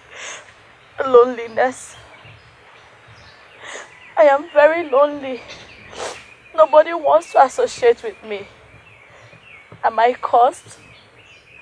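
A young woman speaks close by, upset and pleading.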